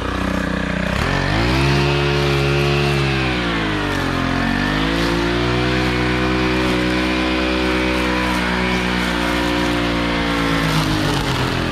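A string trimmer engine revs up to a loud whine that rises and falls as it cuts grass.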